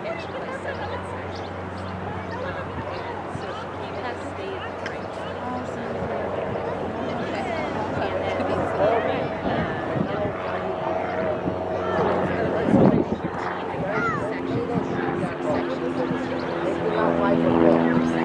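Adult men and women talk and call out close by, outdoors.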